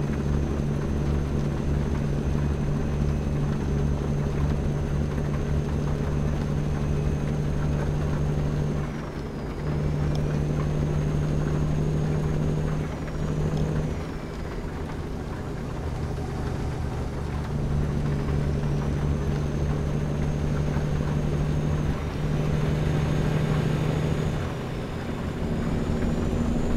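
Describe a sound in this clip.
A truck engine drones steadily, its pitch dropping briefly during gear changes.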